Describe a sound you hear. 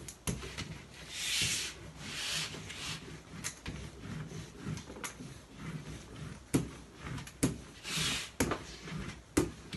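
A roller rolls and scrapes across paper on a table.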